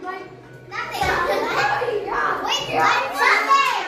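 A crowd of children chatters and laughs in the background.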